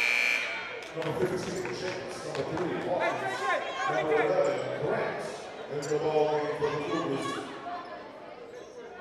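Young women shout to each other in a large echoing gym.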